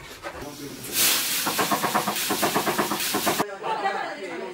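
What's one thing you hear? Water pours and splashes into a metal wok.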